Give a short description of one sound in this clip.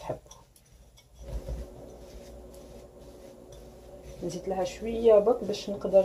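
A spatula scrapes and stirs a thick mixture in a glass bowl.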